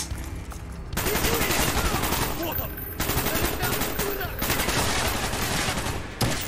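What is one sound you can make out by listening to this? Rifle shots ring out in rapid bursts.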